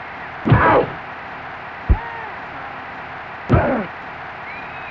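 Padded players thud together in a video game tackle.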